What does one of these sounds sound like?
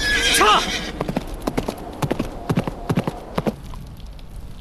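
Horse hooves thud at a gallop.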